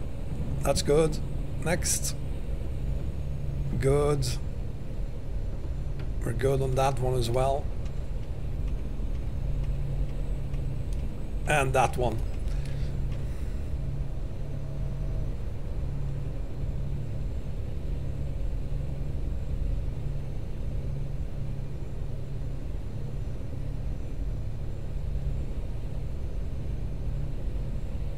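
A truck engine rumbles steadily at low pitch.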